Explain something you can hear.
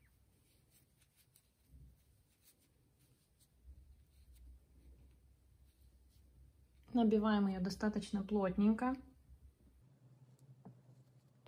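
Fingers softly rustle against yarn and fluffy stuffing.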